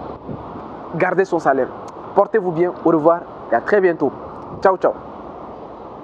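A young man speaks with animation close to a clip-on microphone.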